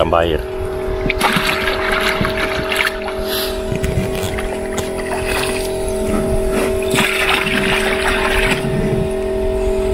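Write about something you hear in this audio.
Water splashes as a bucket is poured out into a tub.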